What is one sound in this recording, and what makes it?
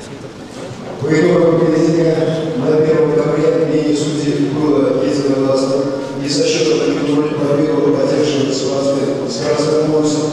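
A man speaks loudly over a loudspeaker.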